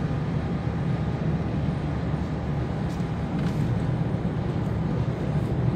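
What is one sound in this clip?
A car engine hums steadily inside a moving car.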